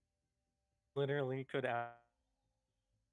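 A young man speaks briefly into a close microphone in a drawn-out, sing-song voice.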